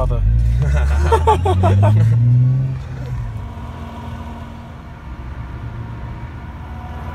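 A car engine rumbles deeply and then settles into a low idle.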